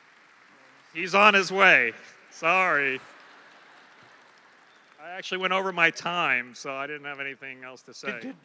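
A man speaks animatedly into a microphone over a loudspeaker in a large hall.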